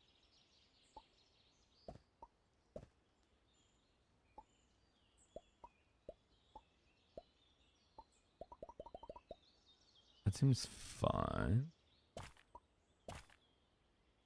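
Short soft clicks sound as game pieces move across a board.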